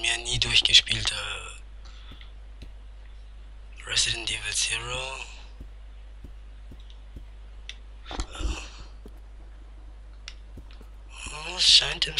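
Footsteps tread slowly and steadily on a hard floor.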